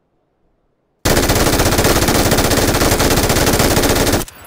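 A rifle fires rapidly at close range.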